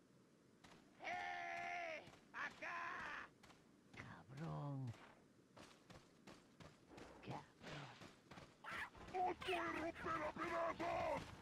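A man shouts angrily in the distance.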